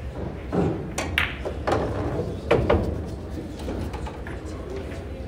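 Billiard balls clack against each other and roll across the table.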